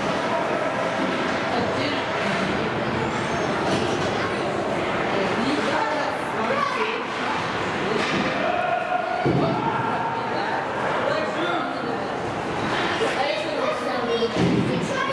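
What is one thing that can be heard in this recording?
Skates scrape and carve across ice in a large echoing rink.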